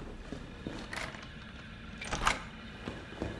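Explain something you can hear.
A door latch clicks as a door is opened.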